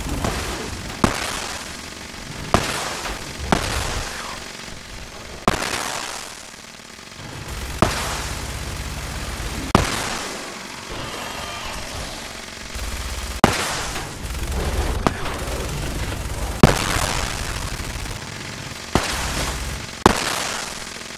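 Heavy guns fire loud, booming shots again and again.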